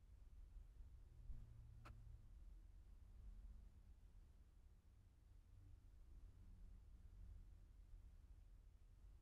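Wind rumbles faintly outdoors.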